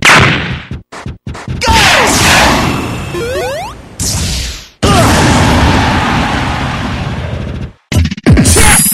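Flames roar and crackle in a game.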